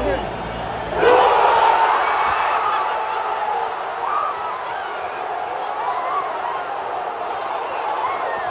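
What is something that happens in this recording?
A huge stadium crowd erupts into a loud, roaring cheer.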